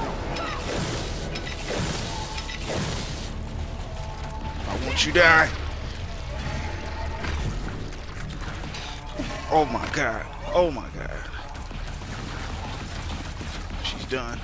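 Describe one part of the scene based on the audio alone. Energy blasts fire and burst with sharp zaps.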